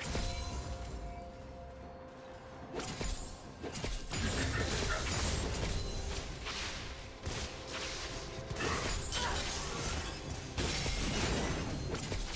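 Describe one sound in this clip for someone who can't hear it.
Game spell effects whoosh and crackle in a fight.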